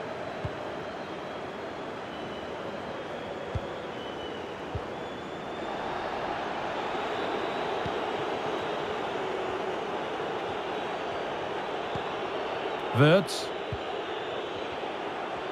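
A large stadium crowd murmurs and cheers steadily, swelling a little louder partway through.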